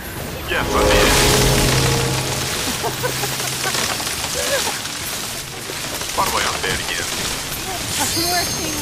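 Magic spells whoosh and shimmer.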